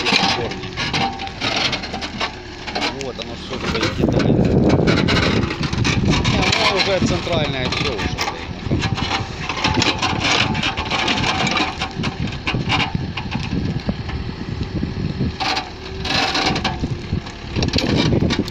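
An excavator bucket scrapes and tears through soil and roots.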